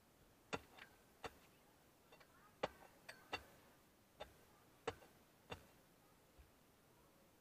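A metal bar strikes hard stony ground in sharp, ringing blows.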